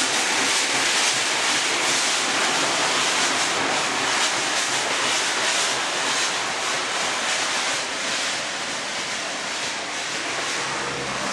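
A steam locomotive hisses steam as it pulls away.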